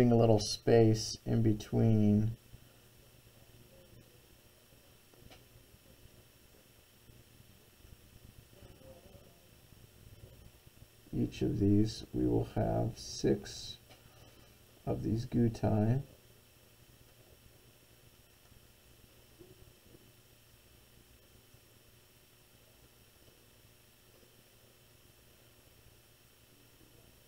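A pencil scratches softly along paper.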